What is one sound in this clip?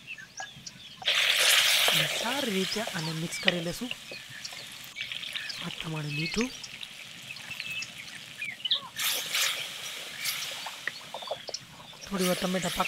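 Food sizzles loudly in a hot pot.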